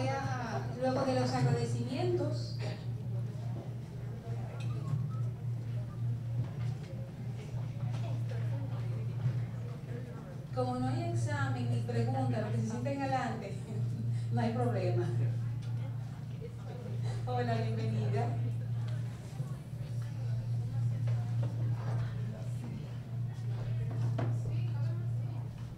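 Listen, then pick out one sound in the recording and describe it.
A woman speaks into a microphone, heard through a loudspeaker in a hall.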